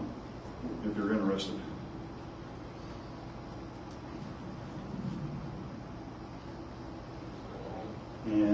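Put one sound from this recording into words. An elderly man speaks into a microphone, heard over a loudspeaker in a room.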